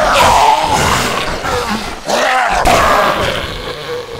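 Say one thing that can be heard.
A blade hacks into a body with heavy, wet thuds.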